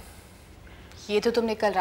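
A young woman talks with animation nearby.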